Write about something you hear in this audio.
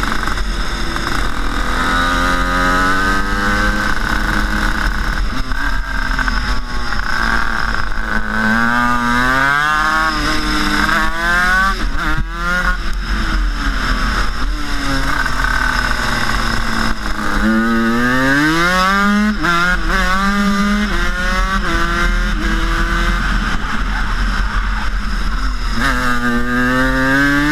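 A kart engine revs loudly up and down close by.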